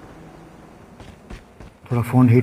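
Footsteps thud on gravel.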